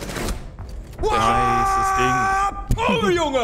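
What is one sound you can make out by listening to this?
A man yells loudly and excitedly into a close microphone.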